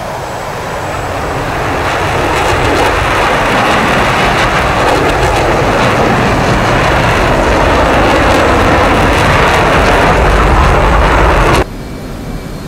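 A jet engine roars loudly and builds.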